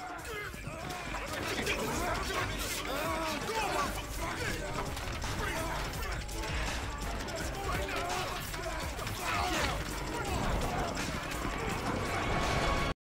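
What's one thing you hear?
Several men shout and grunt in a violent struggle.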